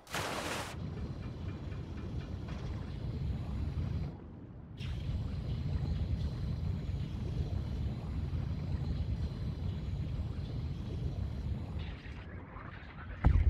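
A small underwater drone's motor hums with a low, steady rumble.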